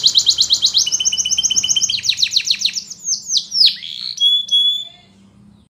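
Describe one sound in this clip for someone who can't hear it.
A canary sings close by in fast, trilling bursts and sweeping whistles.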